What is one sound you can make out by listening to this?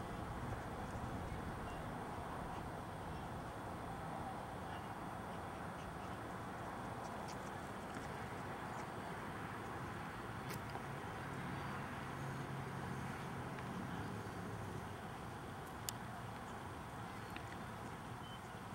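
A dog pushes a plastic ball across grass with a soft rustle.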